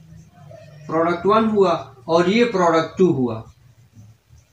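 A man speaks clearly nearby, explaining.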